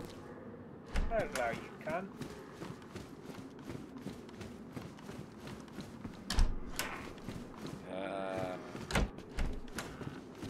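Heavy boots step on a hard floor indoors.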